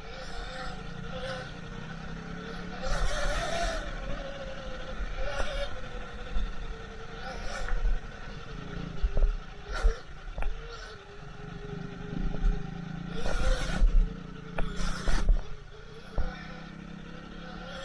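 A dirt bike engine drones and revs up and down close by.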